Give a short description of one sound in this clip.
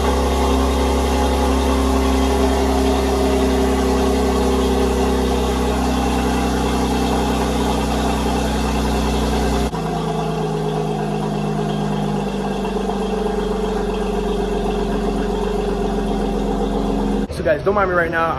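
A car engine idles with a deep, steady rumble in an enclosed space.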